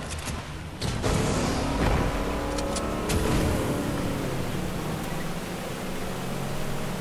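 A motorboat engine roars as the boat speeds along.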